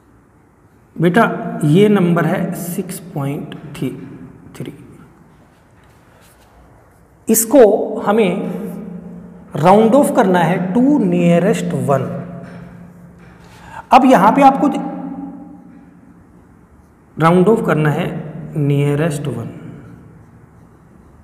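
A man speaks calmly and clearly nearby, explaining in bursts with pauses.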